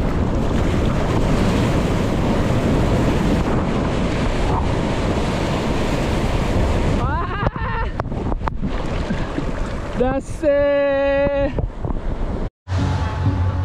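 Water rushes and splashes against a moving boat.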